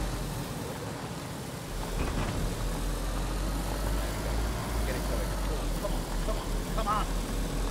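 A car engine hums and rises as the car speeds up.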